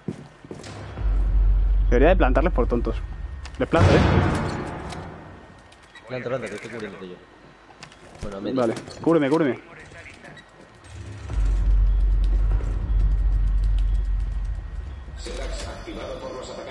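Gunshots boom loudly.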